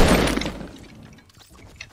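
A shotgun fires a loud blast that rings out and fades.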